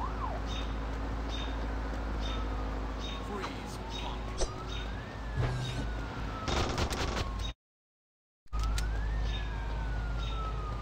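A siren wails, slowly rising and falling.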